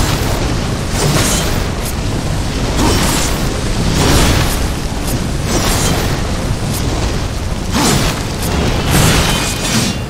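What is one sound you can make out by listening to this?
Heavy blade strikes clang and thud.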